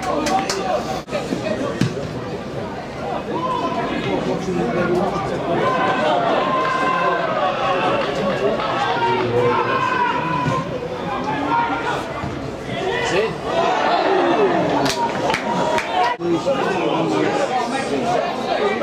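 A football thuds as players kick it.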